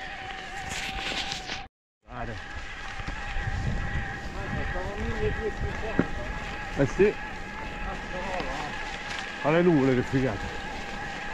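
Bicycle tyres crunch and roll over loose gravel.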